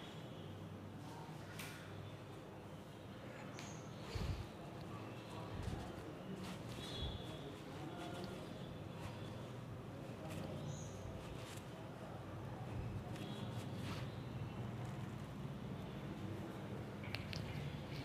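A man explains calmly, close by.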